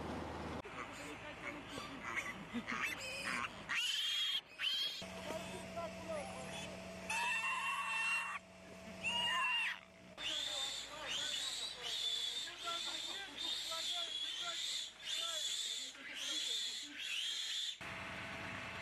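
Piglets squeal loudly and shrilly, again and again.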